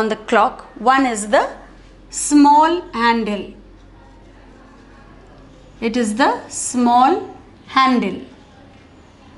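A young woman speaks clearly and calmly, close by, as if teaching.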